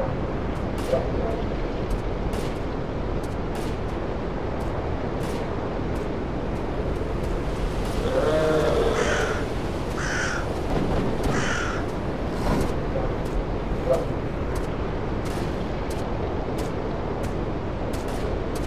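Wind blows steadily through trees outdoors.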